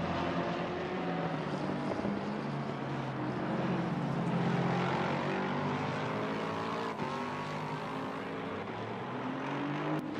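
A racing car engine roars loudly, its pitch rising and falling as it shifts gears.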